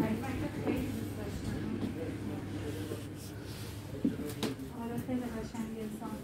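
Women talk quietly nearby.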